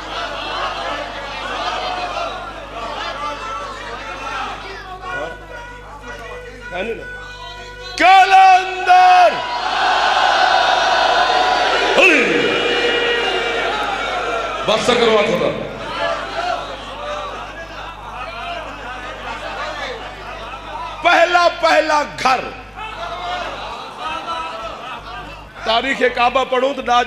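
A young man speaks passionately into a microphone through loudspeakers.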